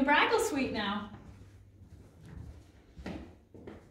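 Footsteps pad softly across a carpeted floor.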